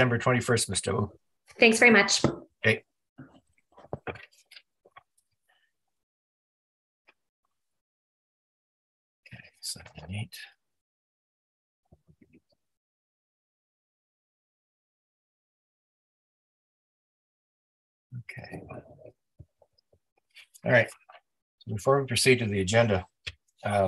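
A man speaks calmly over an online call, in bursts with long pauses.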